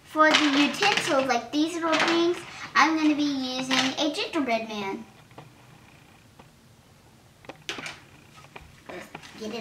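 Plastic toy pieces click and clatter on a table.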